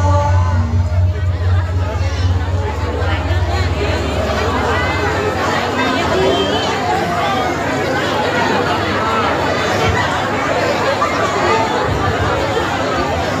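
A crowd of children and adults chatters nearby.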